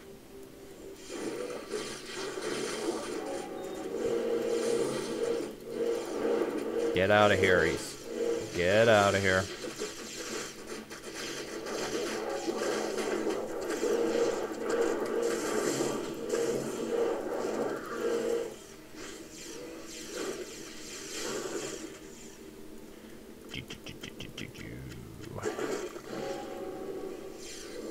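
Spells crackle and zap.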